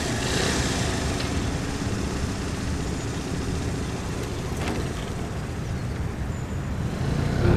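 A scooter engine hums steadily at low speed.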